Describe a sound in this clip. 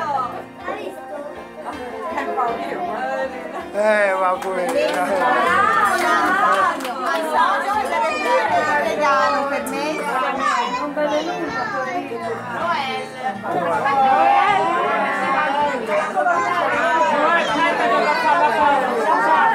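A crowd of adults and children chatter and call out loudly close by.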